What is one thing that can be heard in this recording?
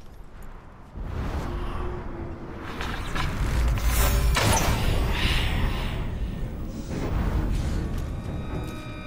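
Loud game combat sounds burst out.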